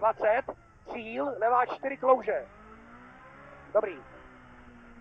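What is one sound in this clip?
A man calls out notes quickly over a helmet intercom.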